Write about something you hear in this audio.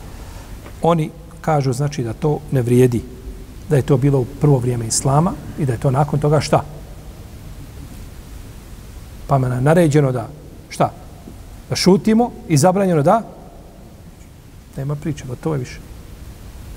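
A middle-aged man speaks calmly and steadily into a nearby microphone, with pauses.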